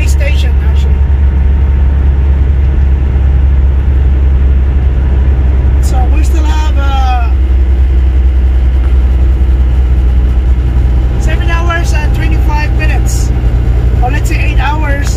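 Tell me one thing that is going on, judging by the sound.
A semi truck's diesel engine drones from inside the cab while cruising on a highway.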